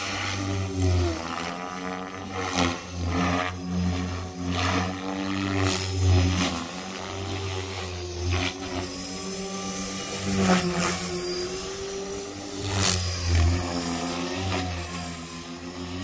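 A model helicopter's motor whines steadily overhead, swelling and fading as it flies past.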